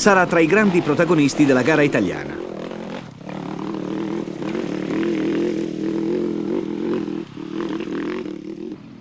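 A motorcycle engine revs hard and loud close by, then drones more quietly as it climbs away.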